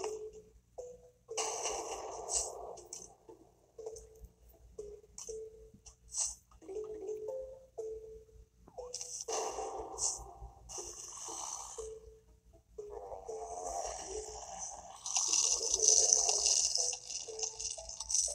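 A video game plays sound effects and music through a small tinny speaker.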